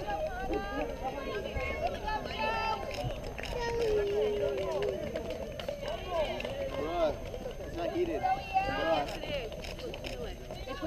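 A crowd of spectators cheers and shouts from a distance outdoors.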